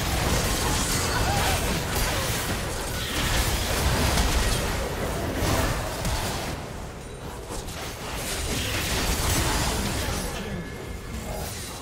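Game spell effects whoosh, crackle and boom in a busy battle.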